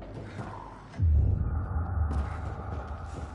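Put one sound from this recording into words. Heavy metal elevator doors rumble as they slide.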